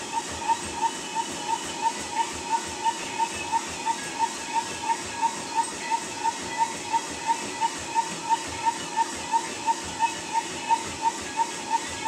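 A treadmill motor hums steadily.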